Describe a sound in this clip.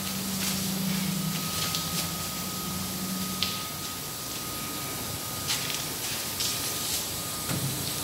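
Machine parts click and clack.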